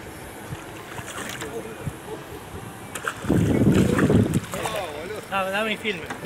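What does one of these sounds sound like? A fish splashes and thrashes in the water close by.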